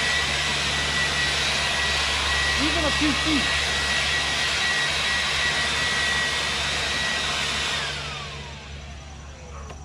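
A cordless leaf blower roars steadily, then winds down.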